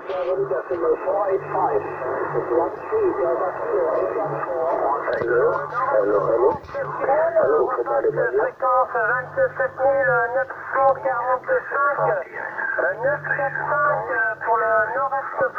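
A man talks over a crackly, thin-sounding radio loudspeaker.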